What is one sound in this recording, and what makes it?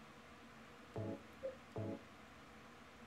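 Soft electronic menu beeps sound.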